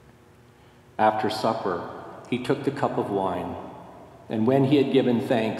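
An older man chants aloud into a microphone.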